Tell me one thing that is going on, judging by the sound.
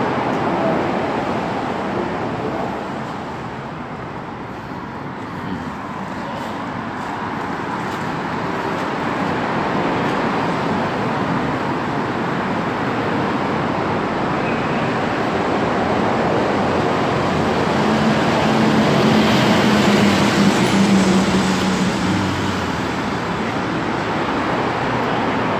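Traffic roars steadily past on a nearby road.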